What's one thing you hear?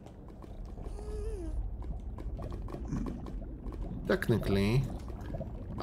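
Lava bubbles and pops softly nearby.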